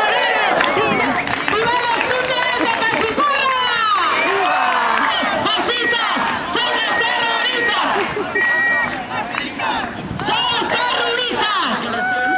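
A crowd of people sings and chants together outdoors.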